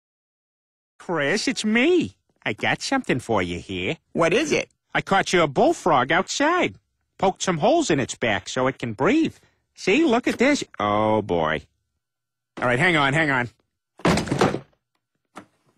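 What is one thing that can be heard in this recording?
A man speaks with animation.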